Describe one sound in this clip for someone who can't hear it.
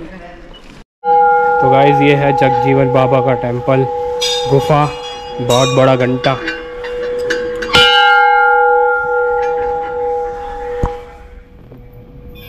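A large metal bell rings out with a long, fading hum.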